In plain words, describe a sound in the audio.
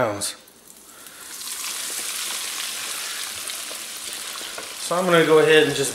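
Food sizzles and crackles as it fries in hot oil.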